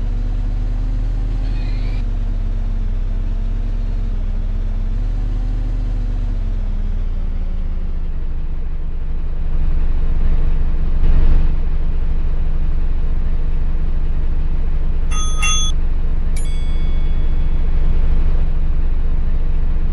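A bus engine hums steadily, its pitch rising and falling as it drives.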